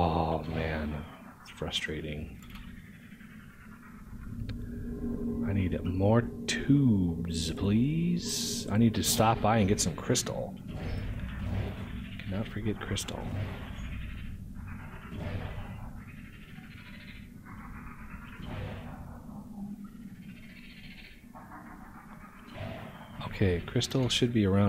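Objects whoosh rapidly through a pipe.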